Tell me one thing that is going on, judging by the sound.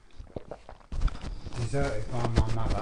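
An elderly man speaks slowly nearby.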